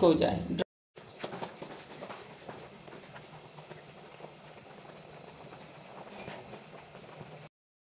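Thick sauce bubbles and pops as it simmers.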